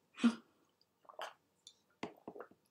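A woman sips water from a glass.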